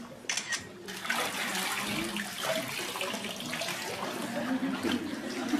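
Water splashes and sloshes in a pool.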